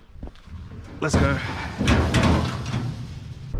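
A metal rack clatters loudly onto a trailer's steel floor.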